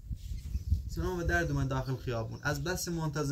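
A young man speaks calmly nearby, outdoors.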